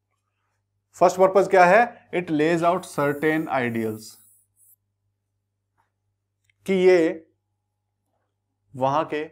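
A man speaks clearly into a close microphone, explaining in short bursts with pauses.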